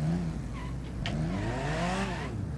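Cars bump and scrape against each other.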